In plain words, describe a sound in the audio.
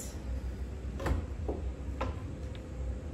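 A wooden frame knocks softly as it is set down on a wooden surface.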